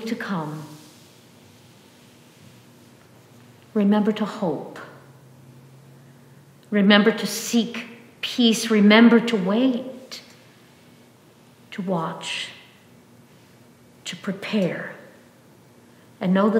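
An older woman reads aloud calmly in phrases with pauses, her voice echoing in a room.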